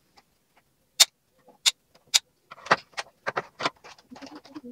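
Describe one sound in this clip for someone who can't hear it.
Small plastic toy pieces click and tap together.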